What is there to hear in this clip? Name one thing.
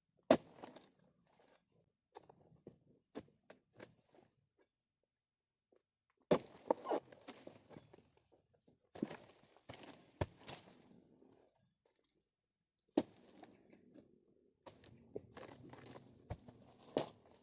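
A long-handled blade chops into palm fronds with sharp thuds.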